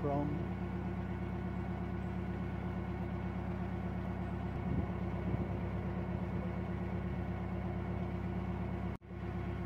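A boat engine chugs steadily.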